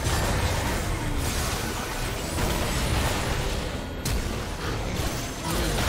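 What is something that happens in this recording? Magical spells blast and crackle during a chaotic fight.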